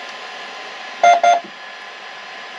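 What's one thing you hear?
A machine beeps a few times.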